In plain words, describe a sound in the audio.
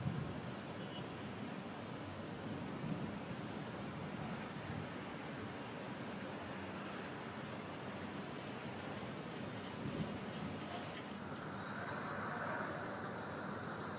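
Car engines idle nearby outdoors.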